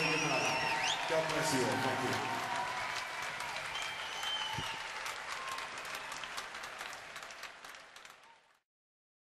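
A large crowd cheers and whistles in a big echoing hall, then fades away.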